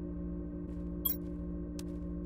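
A short sharp click sounds once.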